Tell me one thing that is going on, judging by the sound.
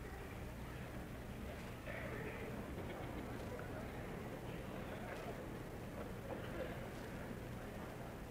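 A middle-aged man speaks calmly through a faint, hissy old recording.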